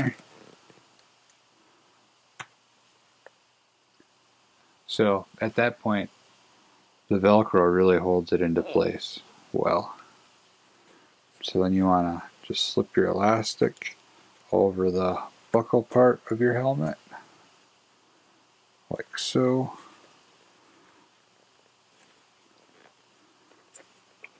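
Plastic parts rustle and click softly as hands handle them.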